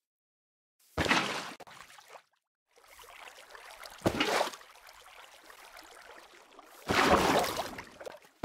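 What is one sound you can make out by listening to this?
Water splashes out of a bucket.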